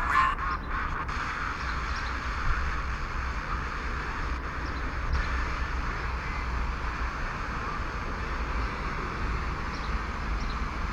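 FM static hisses from a mobile phone's loudspeaker as the radio is tuned between stations.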